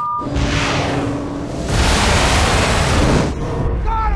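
A missile whooshes and explodes.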